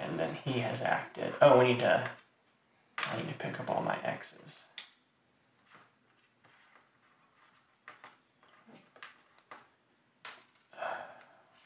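Small plastic pieces tap and clack softly on a tabletop.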